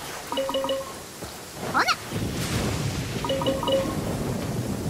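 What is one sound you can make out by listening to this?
A short bright chime jingle plays.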